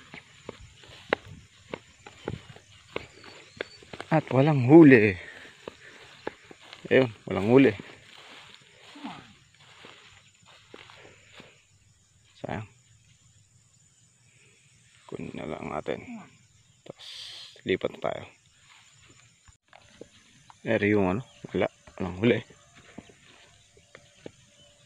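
Footsteps rustle and crunch through tall dry grass.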